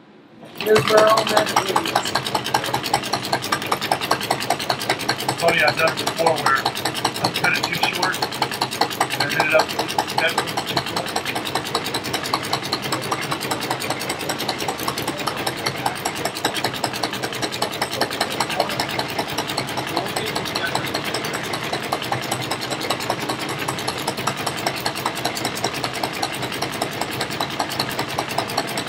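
An industrial sewing machine stitches with a rapid, steady clatter.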